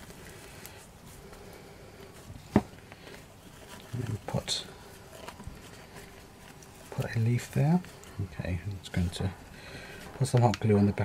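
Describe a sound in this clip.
Dry leaves rustle and crinkle as hands handle them up close.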